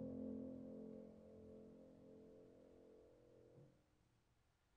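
A piano chord rings and slowly fades.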